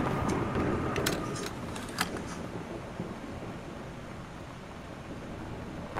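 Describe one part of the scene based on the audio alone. A plastic cassette tape clicks and clatters as it is handled.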